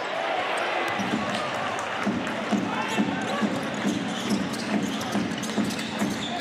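A basketball bounces steadily on the court as a player dribbles.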